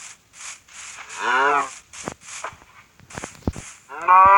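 A cow moos.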